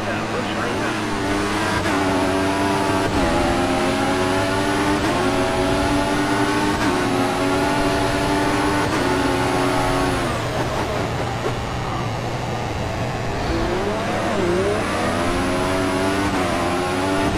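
A racing car engine screams at high revs, rising in pitch and dropping sharply with each gear change.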